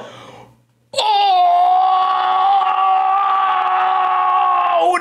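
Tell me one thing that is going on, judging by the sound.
A young man lets out a long, loud, drawn-out shout of surprise close to a microphone.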